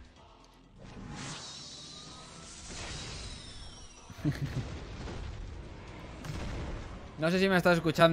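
Game sound effects whoosh and burst during a battle.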